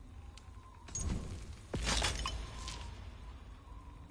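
A deep whoosh sweeps as a menu closes and another opens.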